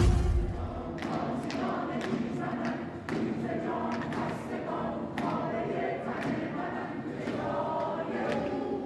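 A crowd claps in rhythm.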